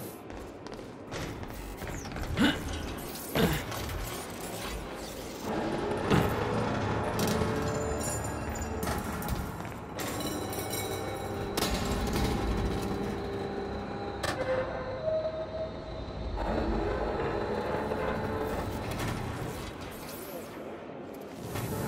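Footsteps walk and run across a hard floor.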